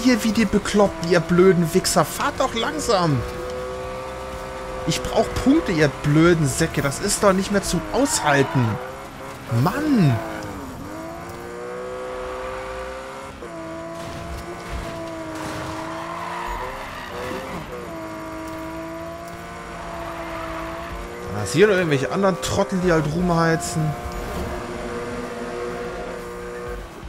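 A racing car engine roars and revs up and down.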